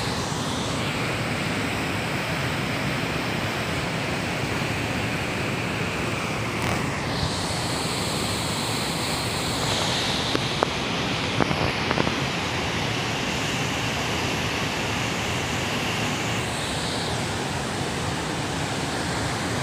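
A fast river roars close by over boulders in rapids.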